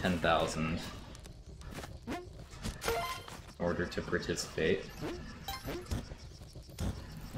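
Short video game sound effects chirp and thud.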